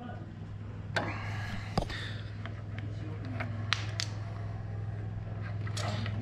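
Metal wire connectors click and rattle in a hand.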